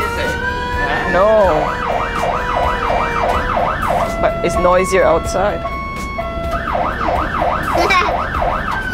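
A fire engine siren yelps rapidly.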